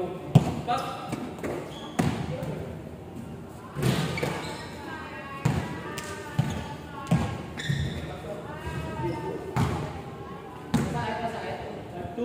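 Young men shout and call out to each other as they play.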